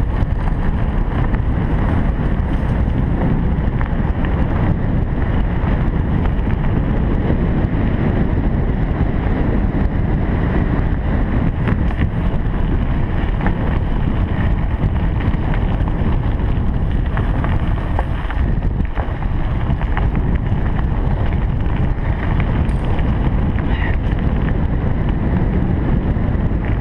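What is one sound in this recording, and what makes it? Bicycle tyres crunch and rumble steadily over a gravel path.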